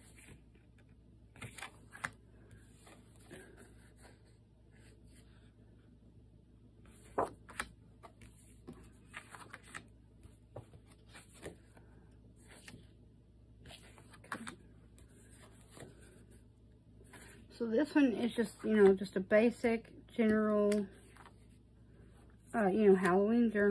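Sheets of thick paper rustle and slap softly as they are shuffled by hand.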